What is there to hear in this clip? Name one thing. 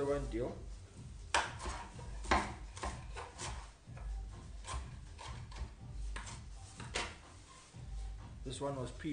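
A knife chops herbs on a wooden board with quick knocks.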